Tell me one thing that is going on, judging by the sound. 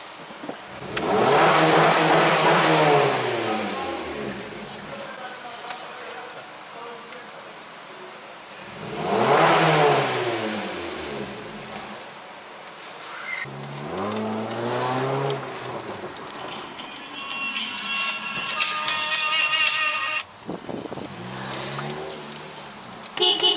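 A car engine revs up and settles back to idle several times.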